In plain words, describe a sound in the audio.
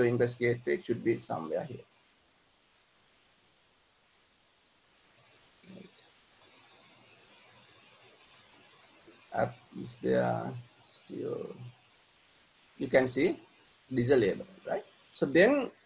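A man speaks calmly into a microphone over an online call, pausing between phrases.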